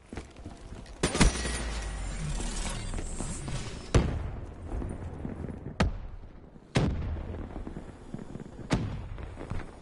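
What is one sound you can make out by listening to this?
A rifle fires loud single shots that ring out.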